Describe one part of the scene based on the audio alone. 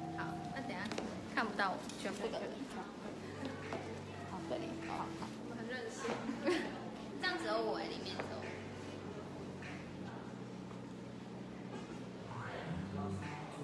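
Young women talk and laugh close by.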